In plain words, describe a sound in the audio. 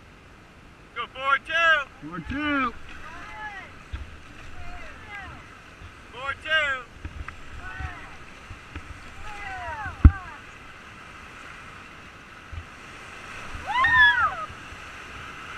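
Young people whoop and shout excitedly nearby.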